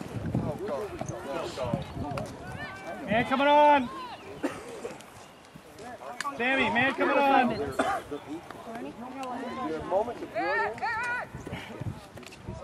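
Teenage boys shout to each other across an open field outdoors.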